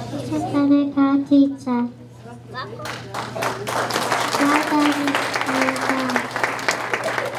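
A young girl speaks into a microphone, heard through loudspeakers in an echoing hall.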